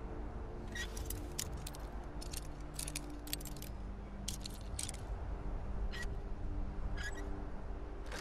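A metal lockpick clicks and scrapes inside a lock.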